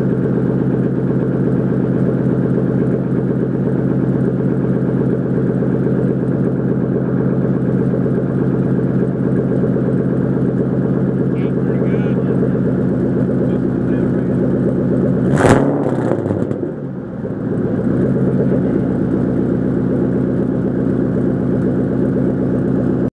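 A car engine idles with a loud, rumbling exhaust close by.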